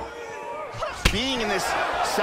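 A kick lands with a sharp thud.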